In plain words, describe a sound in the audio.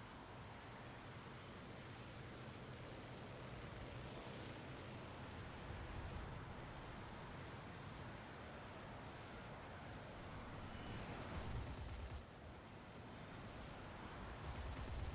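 Wind rushes past a plane in flight.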